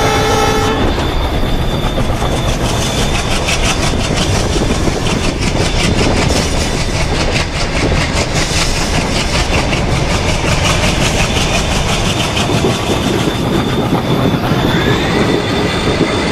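Train wheels clatter rhythmically over the rails.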